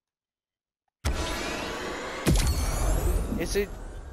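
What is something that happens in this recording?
A game menu plays a shimmering whoosh and a bright reward jingle.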